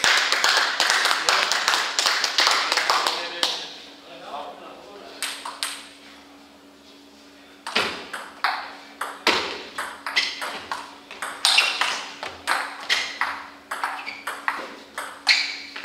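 Ping-pong ball clicks echo through a large hall.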